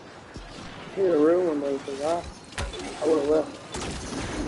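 A young man talks animatedly into a nearby microphone.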